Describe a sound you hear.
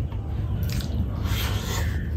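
A man slurps food from his fingers.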